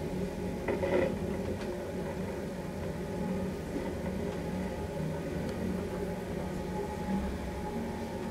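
A traction elevator hums.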